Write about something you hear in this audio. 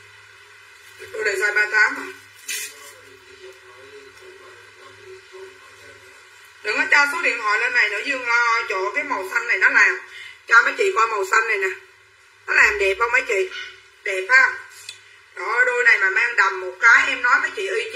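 A woman talks with animation close by.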